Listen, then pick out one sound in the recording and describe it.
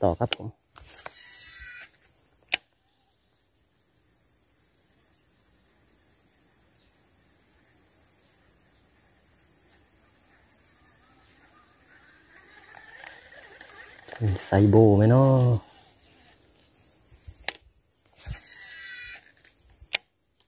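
A baitcasting reel whirs as line pays out during a cast.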